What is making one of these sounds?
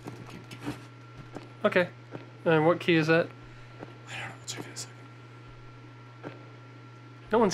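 Footsteps tread slowly across a wooden floor.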